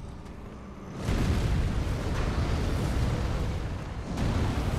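Fire whooshes and roars up close.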